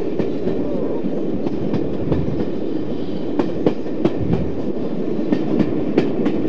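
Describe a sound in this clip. A diesel locomotive rumbles steadily as it rolls along the track.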